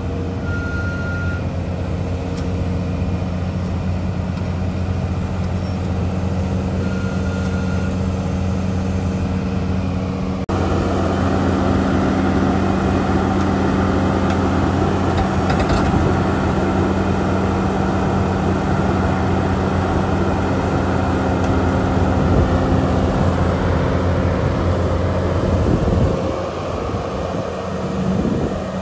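A large diesel engine rumbles steadily nearby.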